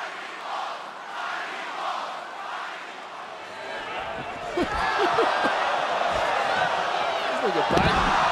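A large crowd cheers and chants loudly in a big arena.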